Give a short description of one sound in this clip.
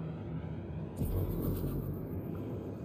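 A spaceship boosts forward with a sudden rushing whoosh.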